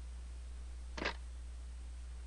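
A phone handset clicks down.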